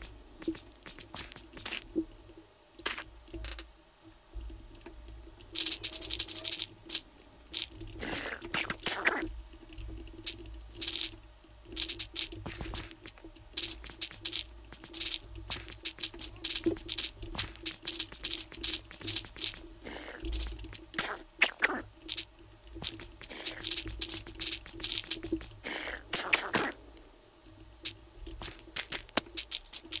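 Dirt blocks crunch with short, quick thuds as they are dug and placed, over and over.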